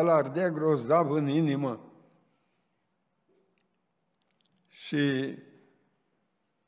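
An elderly man speaks slowly and with feeling into a microphone, pausing between phrases.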